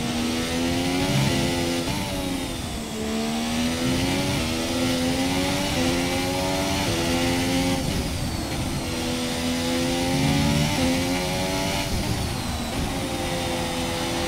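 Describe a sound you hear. A racing car engine screams, its pitch rising and dropping sharply with each gear change.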